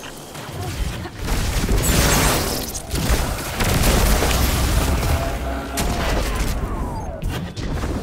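Guns fire in rapid bursts with loud blasts.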